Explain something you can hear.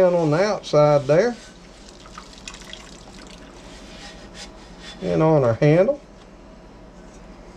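A sponge scrubs a pan in soapy water.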